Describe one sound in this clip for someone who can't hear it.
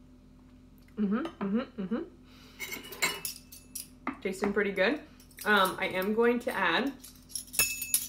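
A young woman speaks casually close by, between bites.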